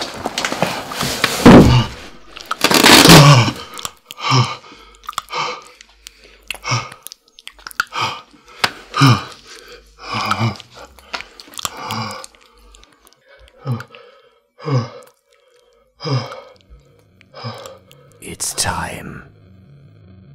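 A man groans and pants loudly close by.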